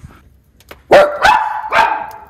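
A small dog barks sharply close by.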